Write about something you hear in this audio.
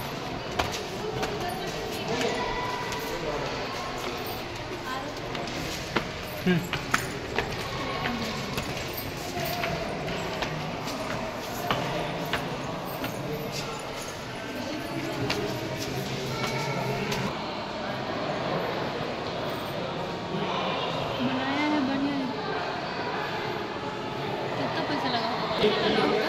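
A crowd of people chatters nearby in an echoing hall.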